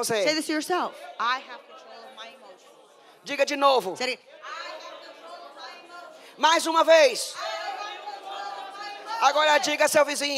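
A young woman speaks animatedly into a microphone, heard through loudspeakers in an echoing hall.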